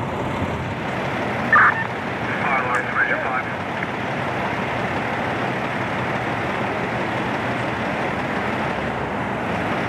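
Footsteps crunch on debris-strewn pavement.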